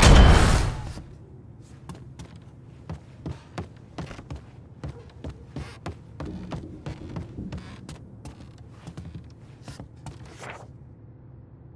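Footsteps thud on a wooden floor indoors.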